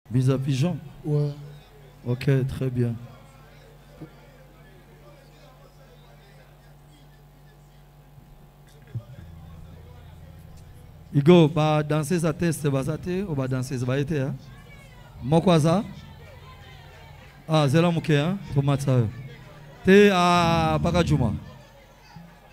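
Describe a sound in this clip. A man speaks loudly through a microphone and loudspeakers in short bursts, in a large echoing room.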